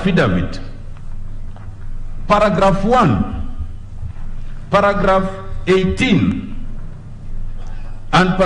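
A man speaks in short bursts through a microphone in an echoing hall.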